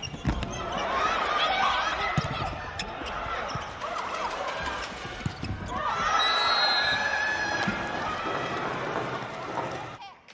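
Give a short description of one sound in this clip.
A crowd cheers and chants in a large echoing arena.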